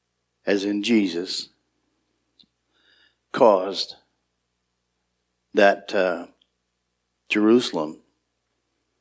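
A middle-aged man speaks slowly and deliberately into a microphone, with pauses between phrases.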